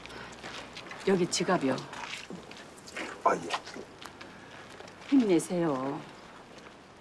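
A middle-aged woman speaks insistently, close by.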